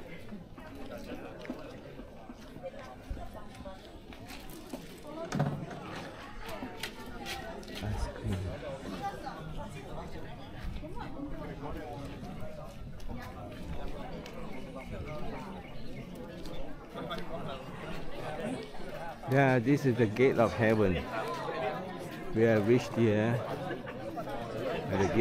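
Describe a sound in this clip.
A crowd of people chatter in the open air.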